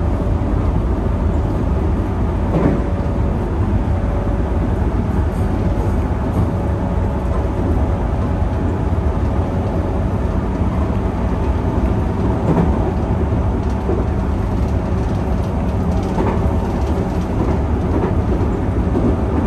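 A train rumbles steadily along the tracks, heard from inside the cab.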